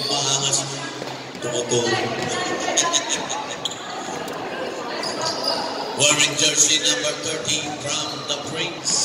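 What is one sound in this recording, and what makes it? Young players shout and call out across a large echoing gym.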